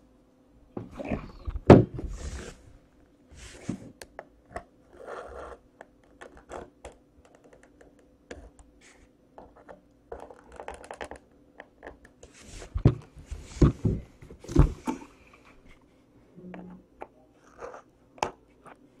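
Plastic clicks and knocks as a device is handled.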